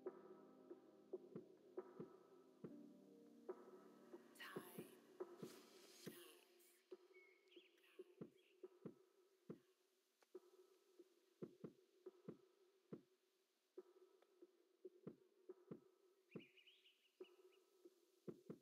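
A horse's hooves clop steadily on a stone path.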